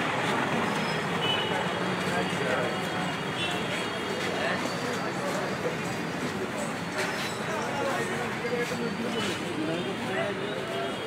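A crowd of men chatter outdoors in a busy street.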